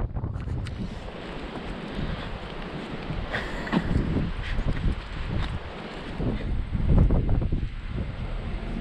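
Strong wind buffets the microphone outdoors.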